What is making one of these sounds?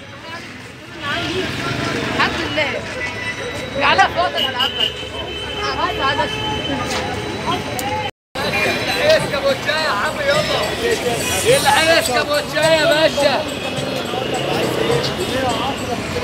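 A crowd of men and women chatter loudly all around outdoors.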